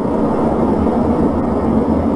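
Jet planes roar steadily overhead.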